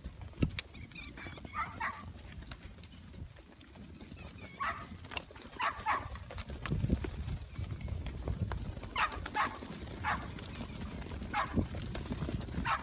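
A large flock of sheep bleats nearby.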